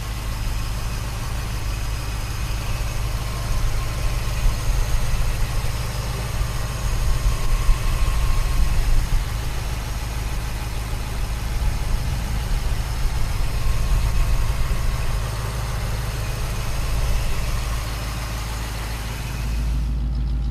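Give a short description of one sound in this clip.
A car engine idles with a steady low rumble.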